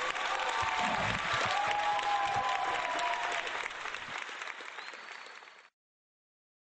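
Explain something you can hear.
An acoustic guitar is strummed and fades away.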